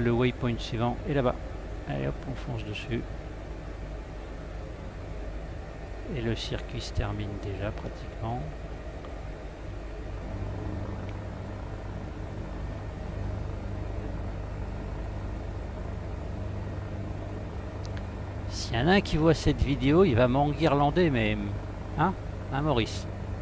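A helicopter engine and rotor hum steadily.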